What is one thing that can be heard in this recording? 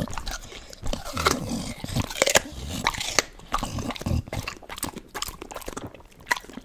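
A dog chews and licks noisily close to a microphone.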